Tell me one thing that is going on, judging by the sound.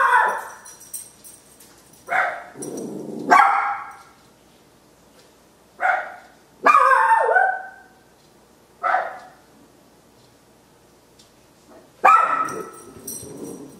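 A small dog barks sharply several times nearby.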